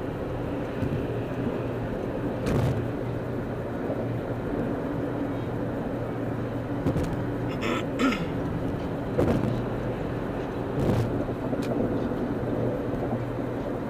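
Tyres roar steadily on a highway.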